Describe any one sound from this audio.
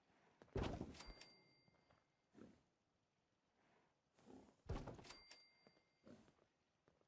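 A short bright chime rings out.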